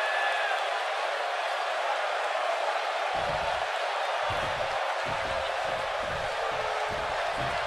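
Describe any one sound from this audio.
A large arena crowd roars and cheers steadily.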